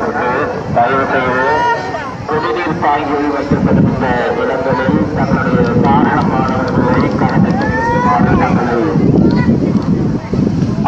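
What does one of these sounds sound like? A crowd of men, women and children chatter loudly outdoors.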